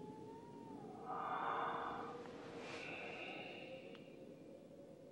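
A man sobs close by.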